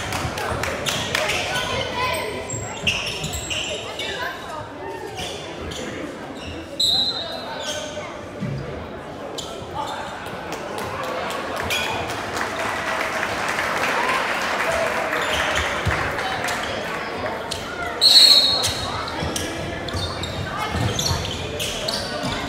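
Spectators chatter in a large echoing gym.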